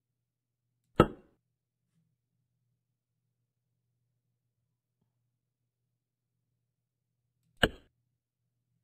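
A small metal weight clinks down onto a hard surface.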